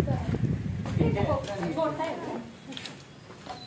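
An elderly woman talks close by.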